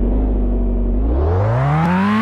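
A car engine revs up.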